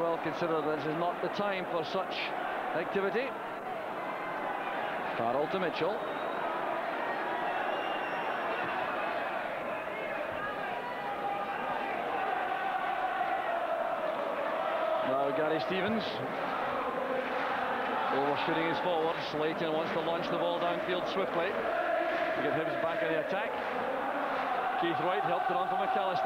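A large stadium crowd roars and chants throughout.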